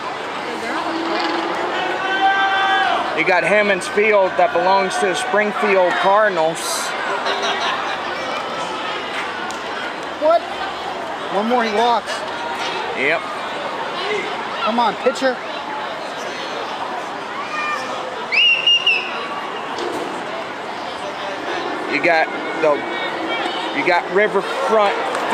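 Nearby men and women in a crowd talk and call out.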